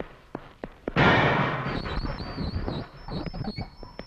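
A metal cell door clanks and rattles open.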